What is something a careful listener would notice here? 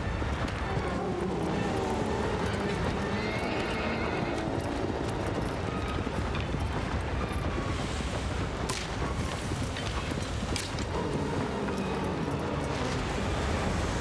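A huge creature rumbles and roars as it bursts from the sand.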